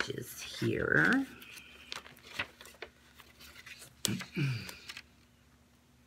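Paper rustles in a woman's hands.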